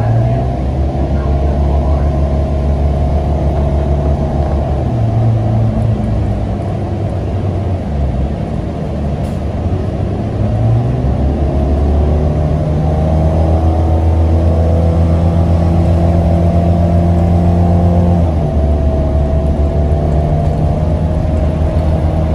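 A bus rattles and vibrates over the road.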